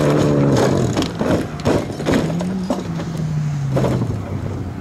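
A car tumbles and crashes onto gravel with heavy thuds.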